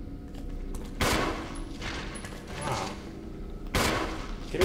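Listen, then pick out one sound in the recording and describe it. Heavy blows thud against a body, each followed by a rushing noise.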